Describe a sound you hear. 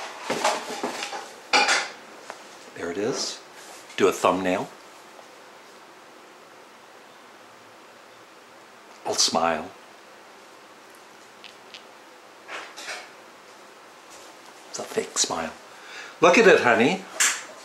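A middle-aged man talks close to the microphone, in bursts with pauses.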